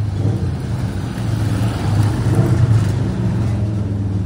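A motorcycle engine roars as it passes close by.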